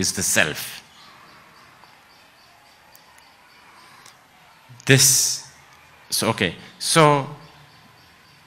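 A man speaks slowly and calmly into a microphone, with long pauses.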